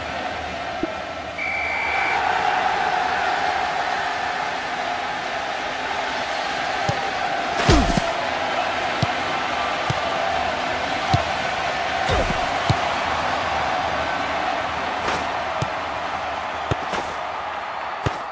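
A crowd cheers and roars steadily in a large stadium.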